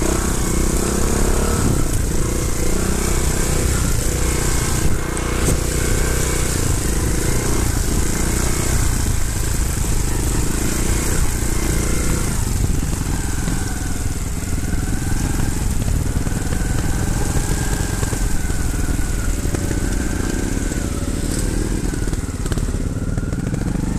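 Another dirt bike engine hums a little way ahead.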